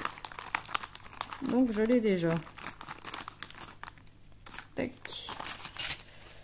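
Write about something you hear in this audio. A plastic wrapper crinkles and rustles as it is torn open.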